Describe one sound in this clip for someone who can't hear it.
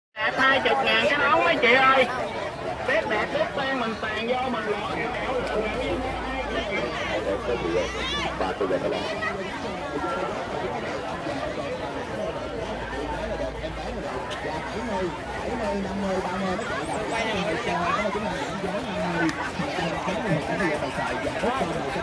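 A dense crowd of men and women chatters all around outdoors.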